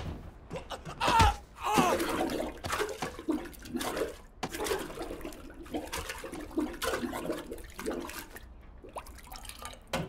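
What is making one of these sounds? A man gasps and groans as he struggles.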